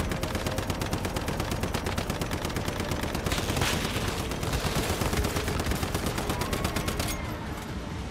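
Rapid gunfire rattles in quick, steady bursts.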